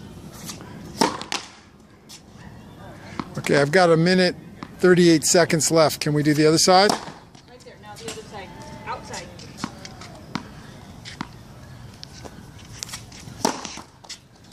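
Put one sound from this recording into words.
A tennis racket strikes a ball on a serve.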